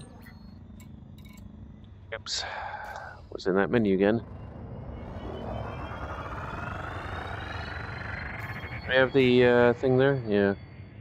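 A spaceship engine hums and slowly rises in pitch.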